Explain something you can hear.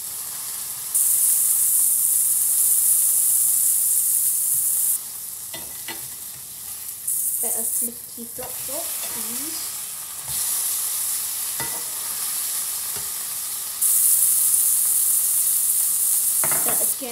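Food sizzles loudly in a hot frying pan.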